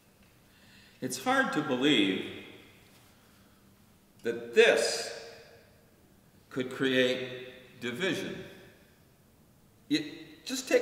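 An elderly man speaks calmly and clearly in a room with a slight echo.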